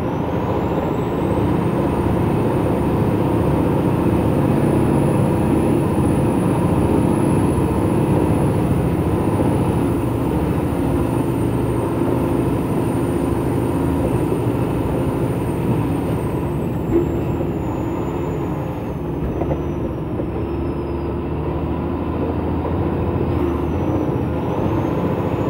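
A heavy truck's diesel engine rumbles steadily from inside the cab.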